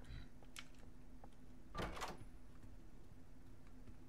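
A wooden door opens.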